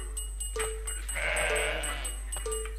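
A sheep bleats.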